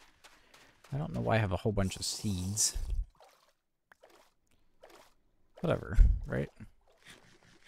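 Water splashes loudly as something plunges in and swims.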